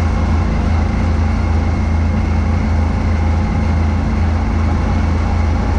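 Snow rushes and hisses out of a snowblower chute.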